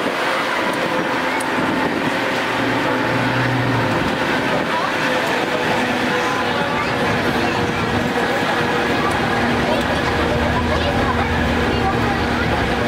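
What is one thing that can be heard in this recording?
An open-air passenger tram rolls along.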